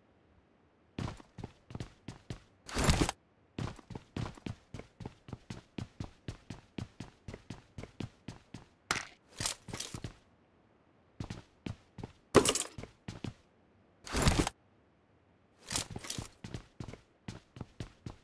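Footsteps clank quickly on a metal floor.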